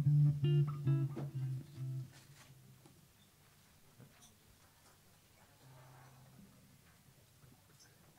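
An electric guitar plays chords.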